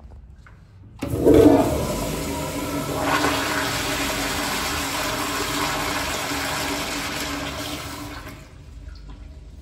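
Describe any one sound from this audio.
A toilet flushes with a loud rush of water that gradually fades.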